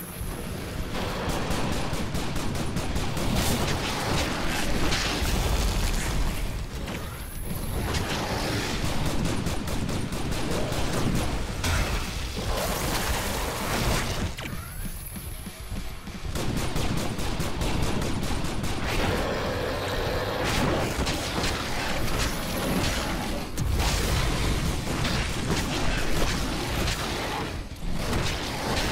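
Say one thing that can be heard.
Heavy blows thud and smash repeatedly.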